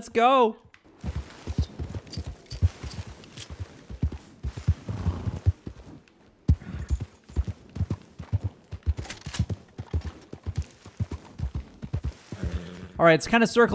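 A horse gallops, its hooves thudding on dry ground.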